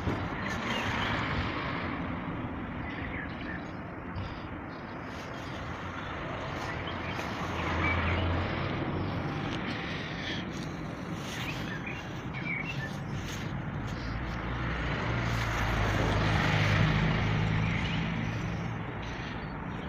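Construction machinery rumbles steadily on a building site outdoors.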